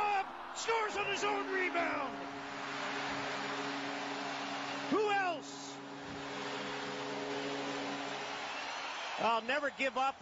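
A crowd cheers and roars loudly.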